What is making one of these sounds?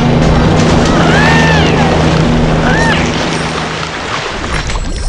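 Water splashes and churns loudly.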